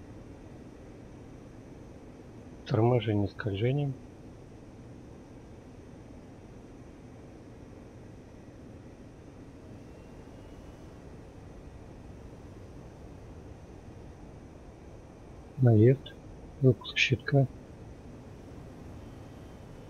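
A twin-engine jet fighter's engines drone steadily from inside the cockpit.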